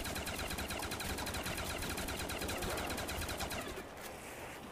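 An automatic rifle fires rapid bursts in a video game.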